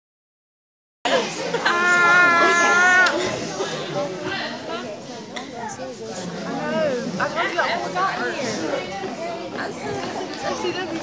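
Spectators shout and cheer in a large echoing hall.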